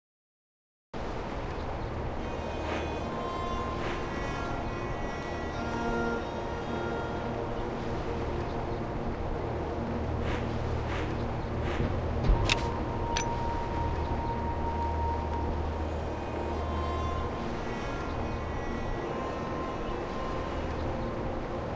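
Soft game music plays steadily with gentle chiming tones.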